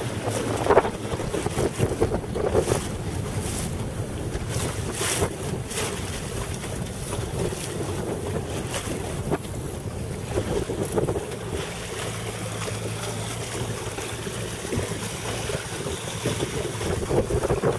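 Wind blows steadily across open water.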